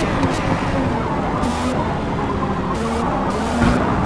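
Tyres screech on the track through the corners.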